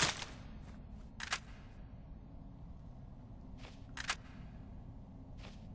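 Footsteps crunch slowly on a gritty floor.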